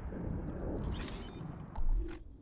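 A short electronic chime rings in a video game.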